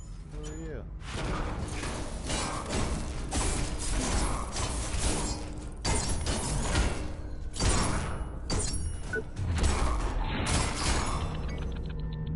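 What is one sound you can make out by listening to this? Heavy metal blows clang and crash in a fight.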